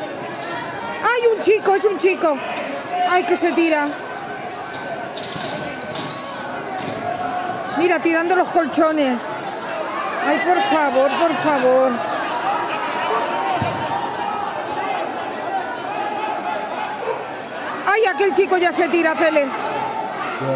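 Several men and women shout urgently from a street below, heard from a distance outdoors.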